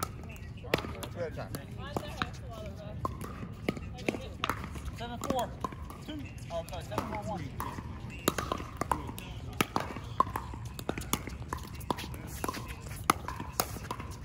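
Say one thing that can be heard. Paddles hit a plastic ball with sharp pops, back and forth.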